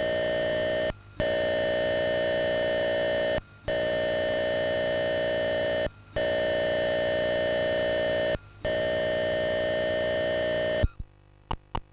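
A harsh, steady electronic data tone buzzes in long bursts with short breaks.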